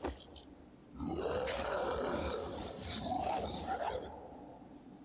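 A large creature growls and roars.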